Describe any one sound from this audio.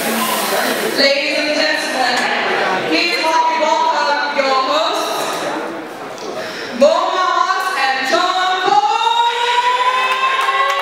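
A young woman speaks into a microphone, amplified in a large room.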